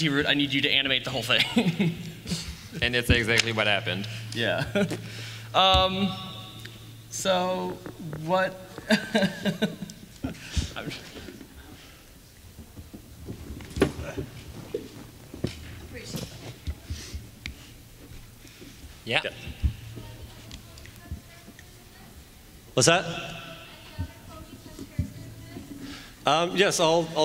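A man speaks into a microphone through loudspeakers in a large echoing hall.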